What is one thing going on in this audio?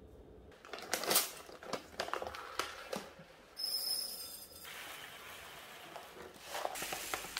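Oat grains pour and rattle into a glass.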